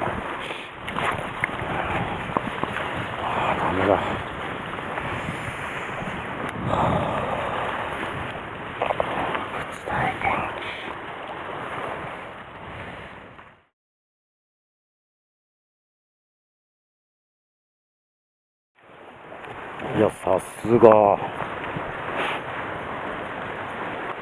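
Sea water washes against rocks outdoors.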